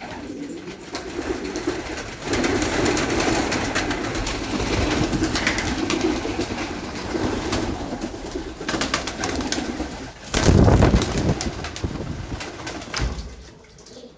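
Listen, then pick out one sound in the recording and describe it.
Pigeons coo with low, throaty calls.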